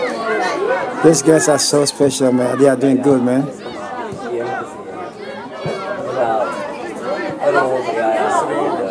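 Children shout and call out to each other outdoors.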